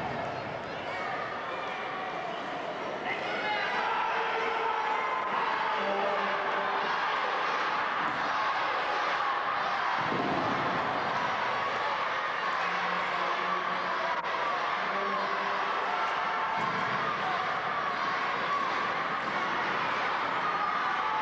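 A crowd shouts and cheers, echoing in a large hall.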